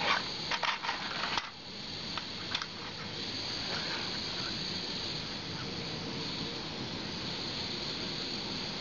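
A gas burner hisses and roars steadily.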